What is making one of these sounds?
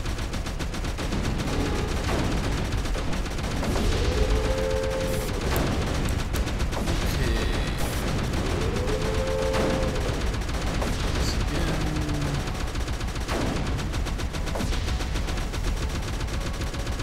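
Electronic game blasts fire repeatedly.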